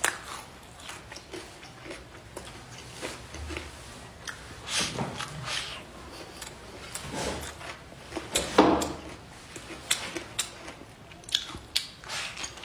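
Chopsticks click against a bowl.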